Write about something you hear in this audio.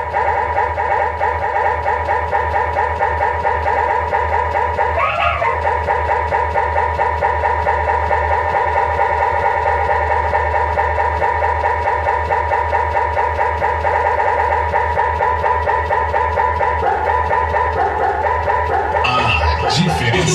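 Loud electronic dance music plays with a steady thumping beat.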